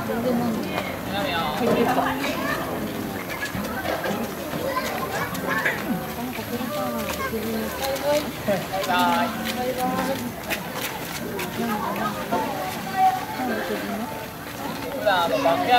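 Several people chatter nearby outdoors.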